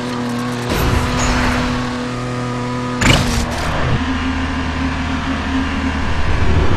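A toy car engine hums steadily.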